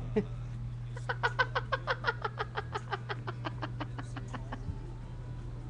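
A young woman laughs heartily in rapid bursts, close to a microphone.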